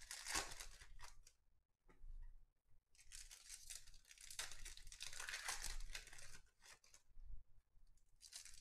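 Cards rustle and slide as they are shuffled by hand.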